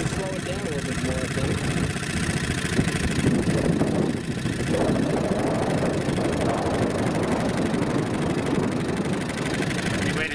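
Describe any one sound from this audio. Water splashes and rushes against the side of a small boat.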